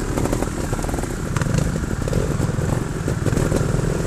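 Other motorcycle engines rumble nearby.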